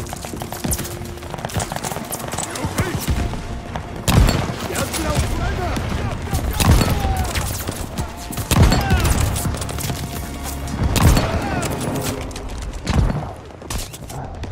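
Distant gunfire and explosions rumble steadily.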